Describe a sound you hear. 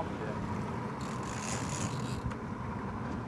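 A fishing reel whirs as its line is wound in.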